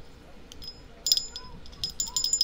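Small metal pieces click and tinkle in hands.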